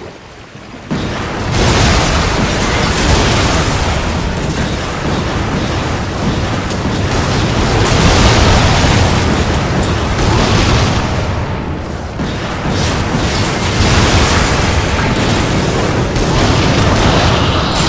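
Gunshots fire rapidly and keep crackling.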